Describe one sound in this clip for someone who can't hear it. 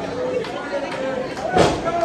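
A body slams onto a wrestling ring mat with a loud thud.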